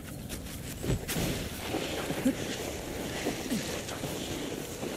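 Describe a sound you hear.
A body slides along loose dirt.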